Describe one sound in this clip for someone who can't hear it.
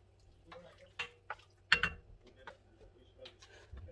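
A spatula scrapes and clinks against a frying pan.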